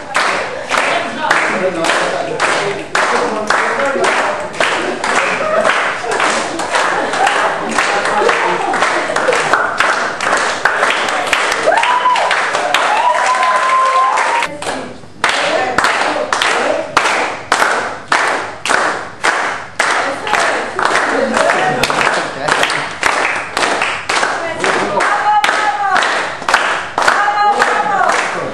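A group of men and women sing together.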